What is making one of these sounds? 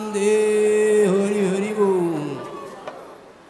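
A large crowd chants and cheers loudly.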